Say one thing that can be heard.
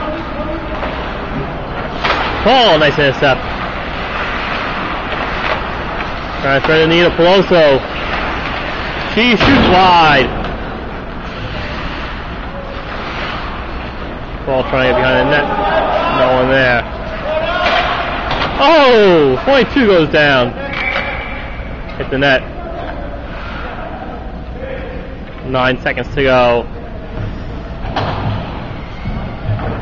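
Ice skates scrape across the ice of a large echoing rink.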